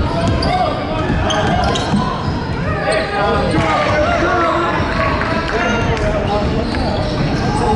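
A crowd of people talks and calls out in a large echoing gym.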